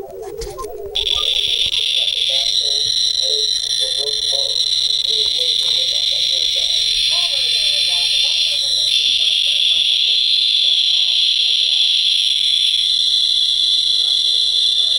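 A radiation detector gives off a dense, steady hiss of rapid crackling.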